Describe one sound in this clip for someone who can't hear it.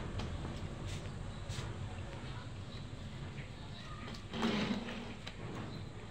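A young girl slurps through a straw.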